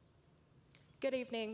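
A woman starts speaking through a microphone.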